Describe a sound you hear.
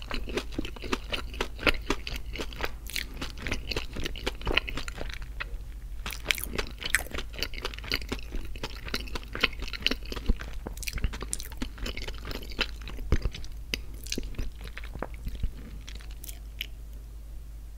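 A man whispers very close to a microphone.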